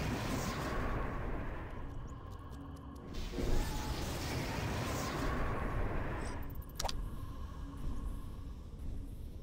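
Fire roars and crackles in a spreading blaze.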